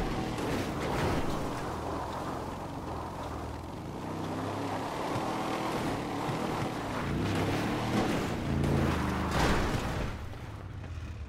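A vehicle engine roars and revs.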